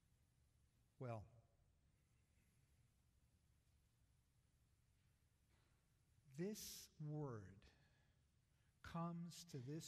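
An elderly man speaks calmly through a microphone in an echoing hall, with long pauses.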